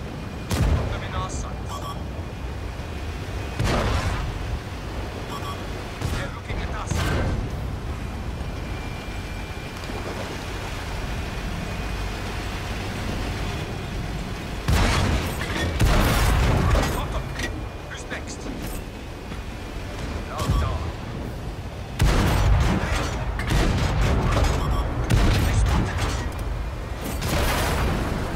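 Tank cannons fire with loud booms.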